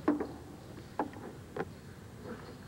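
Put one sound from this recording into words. A cue tip strikes a billiard ball with a sharp click.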